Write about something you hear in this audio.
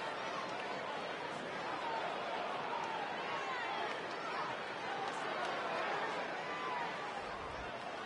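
A large crowd cheers and whistles steadily in a big echoing arena.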